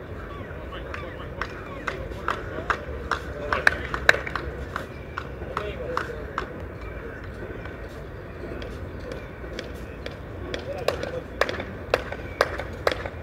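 A tennis ball bounces sharply on a clay court.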